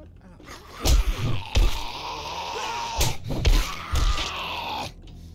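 A sledgehammer thuds heavily into a zombie.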